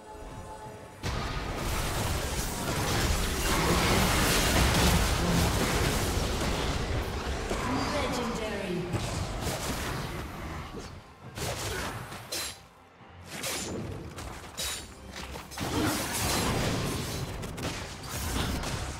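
Game spells and attacks crackle and boom in a noisy fight.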